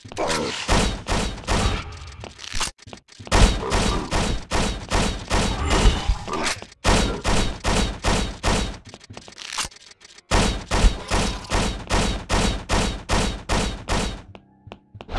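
Guns fire in rapid, repeated shots.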